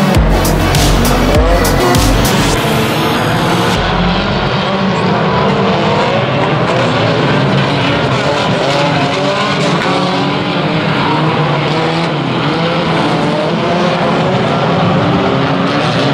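Car engines roar and rev nearby.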